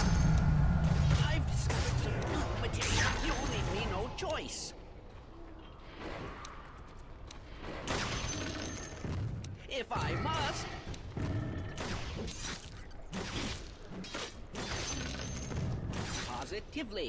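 Swords clash and magic crackles in a fight.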